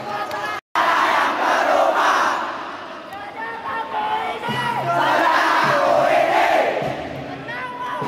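Young men shout together close by.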